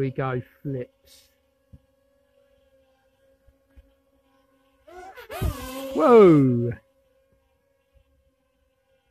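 A small drone buzzes steadily as it hovers and flies outdoors.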